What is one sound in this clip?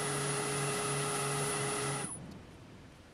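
A wood lathe whirs steadily as it spins.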